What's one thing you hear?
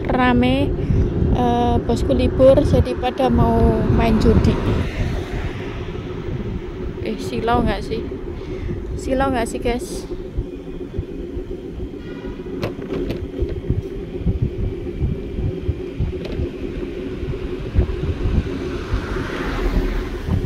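Wind buffets and rumbles steadily outdoors during a ride.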